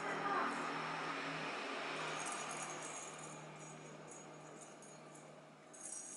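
A small ball rolls and taps across a tiled floor.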